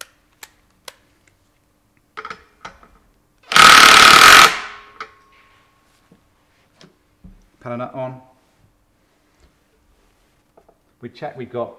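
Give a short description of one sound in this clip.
Metal parts click and clink as they are handled.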